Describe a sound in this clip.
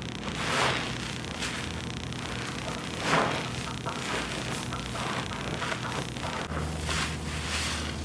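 Hands squeeze a soapy sponge, making squelching, crackling suds in a tub of foamy water.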